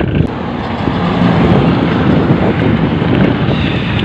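A truck rumbles past on a road.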